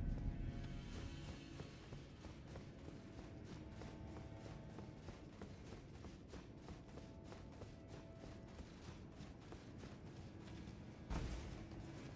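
Footsteps run quickly and steadily across a stone floor.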